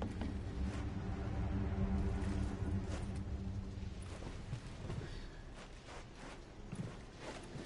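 Footsteps thud on a creaking wooden floor.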